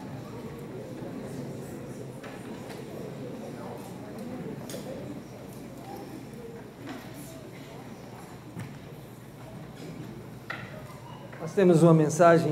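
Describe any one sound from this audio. A crowd murmurs softly in a large room.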